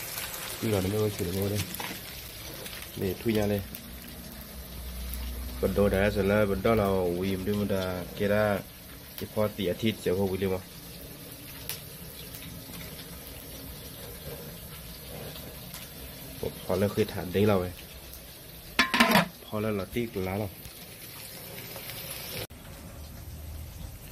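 A wood fire crackles.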